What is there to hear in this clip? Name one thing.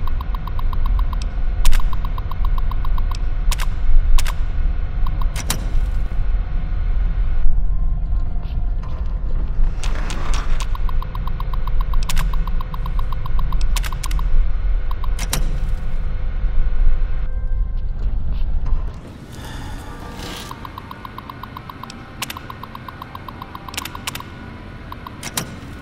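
Keyboard keys clack in quick bursts.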